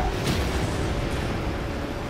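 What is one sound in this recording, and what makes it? A cartoonish goal explosion booms.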